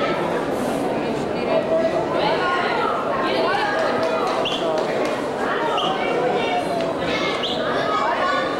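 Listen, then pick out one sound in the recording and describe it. Men and women chatter nearby in a large echoing hall.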